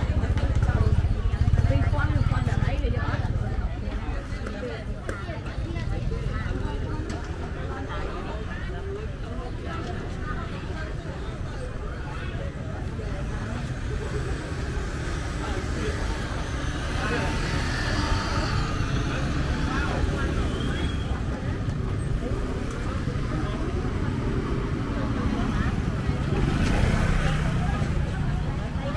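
Many voices chatter all around outdoors.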